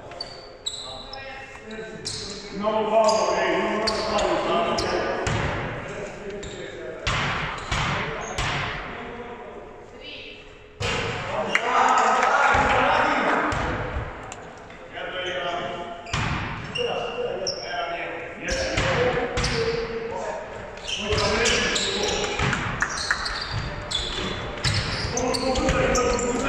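Sneakers squeak sharply on a wooden floor.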